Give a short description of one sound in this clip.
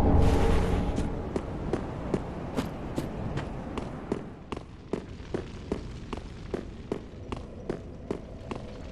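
Heavy armoured footsteps clank steadily on stone.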